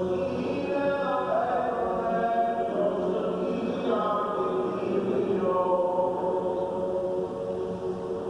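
Men chant together in long, drawn-out tones.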